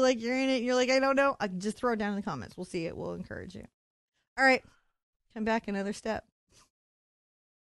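A woman speaks cheerfully and animatedly into a close microphone.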